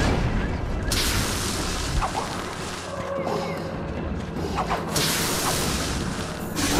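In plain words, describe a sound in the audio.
Electric lightning crackles and buzzes.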